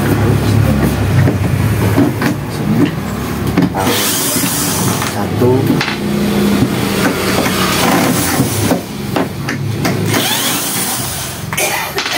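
A cordless drill whirs in short bursts, driving screws.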